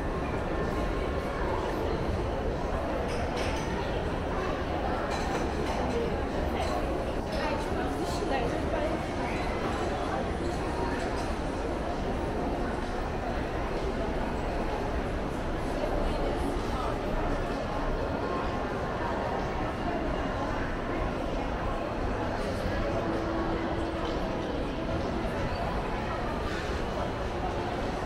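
A crowd murmurs steadily throughout a large echoing hall.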